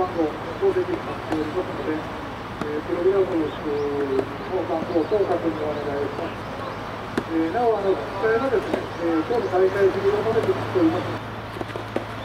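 Young men shout and call out loudly across an open outdoor court.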